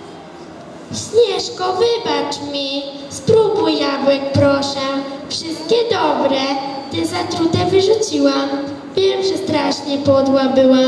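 A choir of children sings loudly in an echoing hall.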